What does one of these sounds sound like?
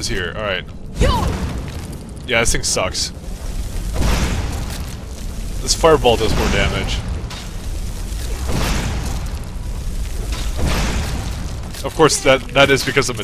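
Flames roar and whoosh as fire spells are cast in bursts.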